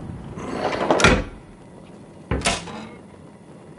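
A heavy metal door lock clunks and slides open.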